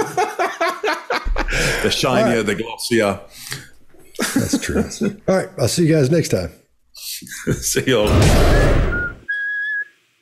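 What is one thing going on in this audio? Middle-aged men laugh over an online call.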